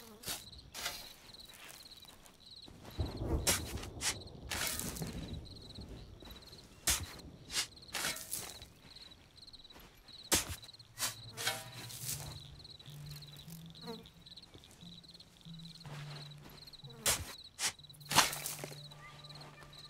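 Dirt bursts and scatters with a soft whoosh.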